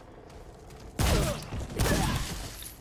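A gun fires twice with loud bangs.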